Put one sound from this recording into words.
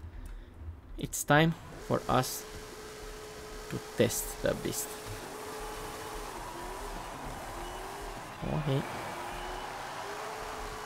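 A car engine idles and revs in short bursts.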